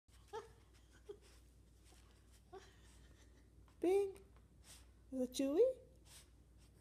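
A small dog yips and whines close by.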